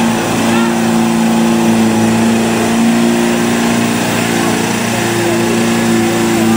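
A truck engine roars steadily as it churns through deep mud.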